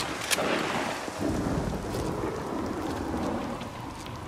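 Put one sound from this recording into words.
Footsteps run on a gravel road.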